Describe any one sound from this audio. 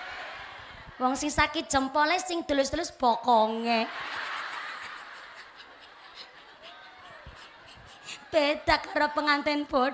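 A young woman speaks with animation through a microphone and loudspeakers.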